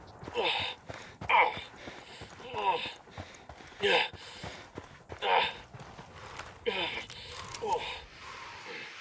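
Footsteps crunch quickly on gravel at a steady run.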